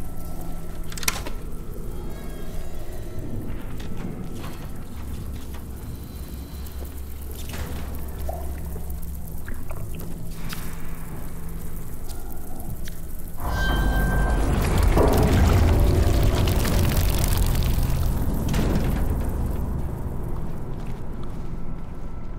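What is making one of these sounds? Footsteps walk slowly over a hard floor.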